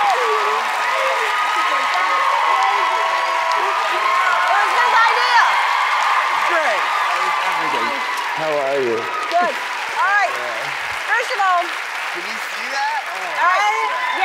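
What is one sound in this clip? A woman laughs and shouts excitedly.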